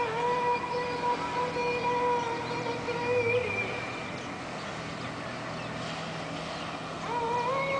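Small waves lap gently on a sandy shore.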